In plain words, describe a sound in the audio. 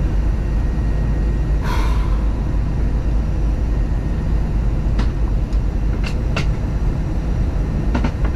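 An aircraft engine drones with a steady, deep roar.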